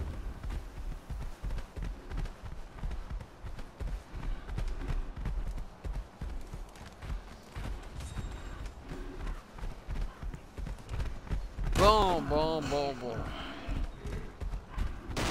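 Footsteps rustle steadily through grass.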